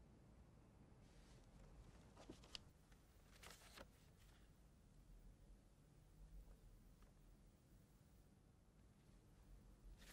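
Paper rustles softly as a man opens a letter.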